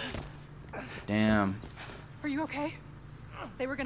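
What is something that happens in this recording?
A young woman asks a short question with concern.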